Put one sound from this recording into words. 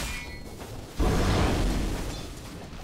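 A fiery blast roars loudly.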